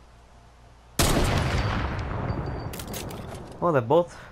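A sniper rifle fires a single loud shot that echoes and slowly fades.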